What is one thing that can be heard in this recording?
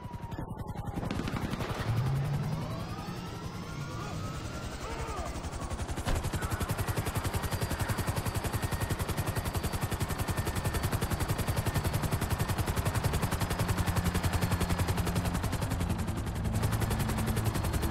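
A helicopter engine whines up and its rotor chops faster and faster, then thumps steadily in flight.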